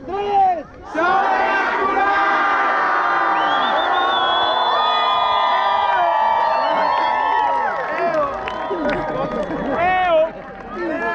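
A large crowd of young people cheers and shouts loudly with raised voices.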